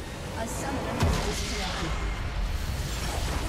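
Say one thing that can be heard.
A burst of icy magic blasts loudly.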